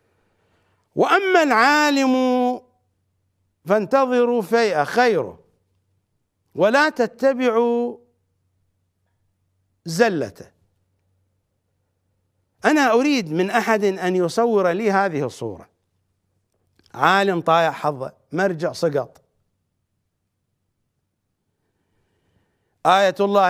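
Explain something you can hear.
A middle-aged man speaks with emotion into a microphone, in long drawn-out phrases with pauses between them.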